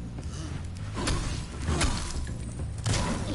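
A large creature stomps heavily with booming thuds.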